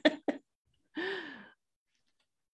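A woman laughs over an online call.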